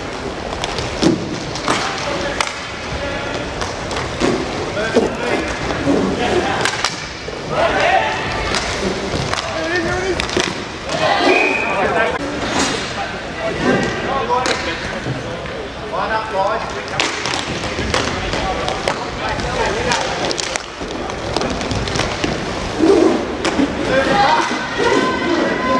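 Sticks clack against a ball and each other.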